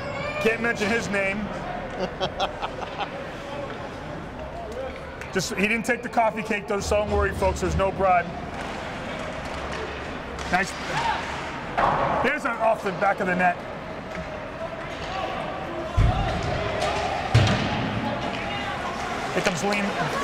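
Skates scrape and hiss across the ice.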